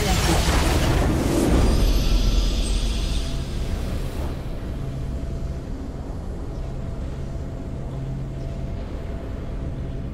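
A triumphant fanfare swells and rings out.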